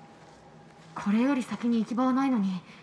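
A young woman asks a question in a calm voice.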